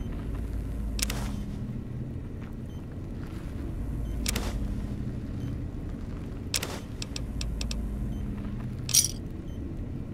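Short electronic clicks and beeps sound now and then.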